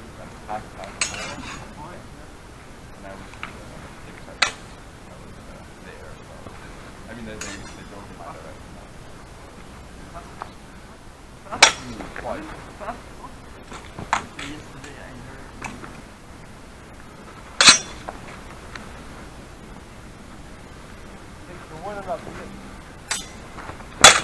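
Swords clash with sharp metallic clicks.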